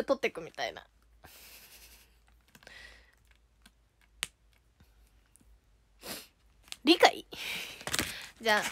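A young woman talks brightly and close to a microphone.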